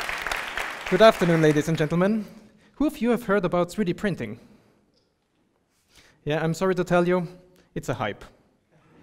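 A man speaks to an audience through a microphone in a large hall.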